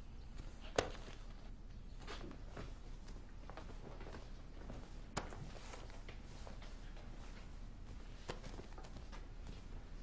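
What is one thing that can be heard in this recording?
Paper pages rustle as account books are handled.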